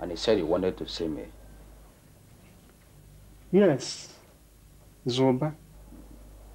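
A man speaks calmly in short phrases close by.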